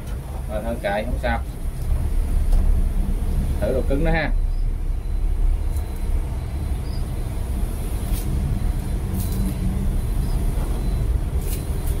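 A screwdriver turns screws into a metal door frame with soft scraping clicks.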